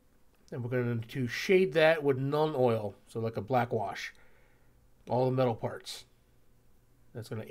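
A small plastic pot is set down on a hard surface.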